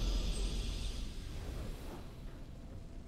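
A triumphant game victory jingle plays and quickly fades.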